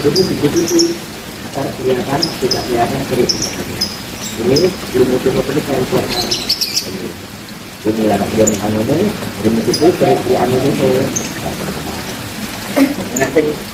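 A woman talks calmly up close.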